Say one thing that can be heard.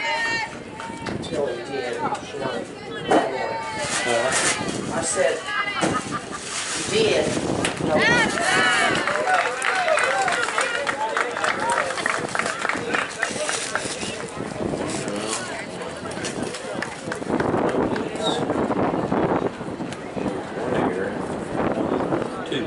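Young women shout and cheer excitedly outdoors.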